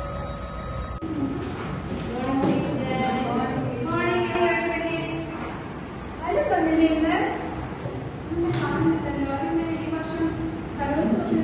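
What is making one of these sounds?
Several women talk with animation close by in a room.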